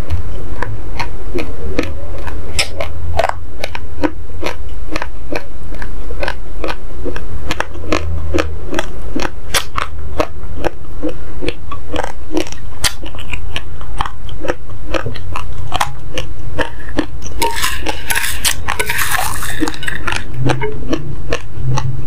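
A woman crunches and chews loudly close to a microphone.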